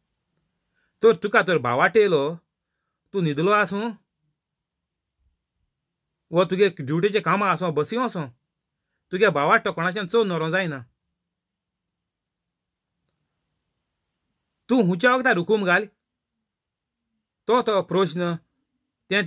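A middle-aged man speaks calmly and close up, in short phrases with pauses.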